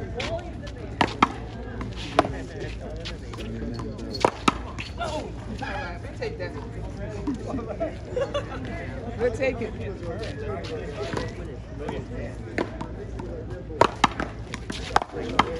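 A ball smacks sharply off paddles and a wall, again and again.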